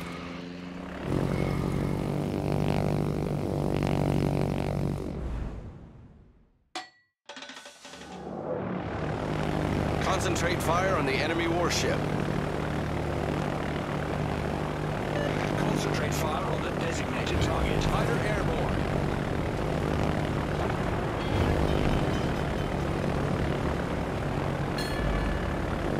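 A formation of propeller planes drones in flight.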